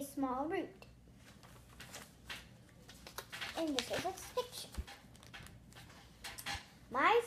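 Paper rustles as a young girl handles cards.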